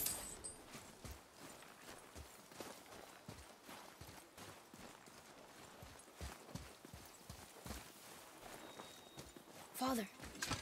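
Footsteps crunch on snow at a steady walking pace.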